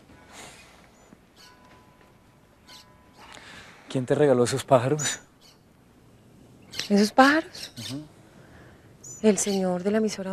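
A caged bird chirps briefly.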